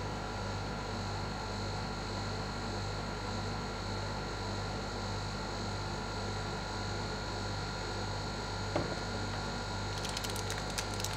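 A refrigeration machine hums steadily.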